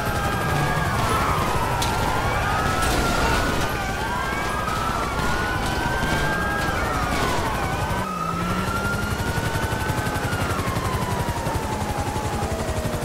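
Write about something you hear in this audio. Several police sirens wail at once, rising and falling close by.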